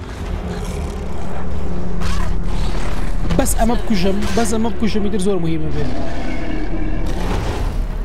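A monster roars loudly and deeply.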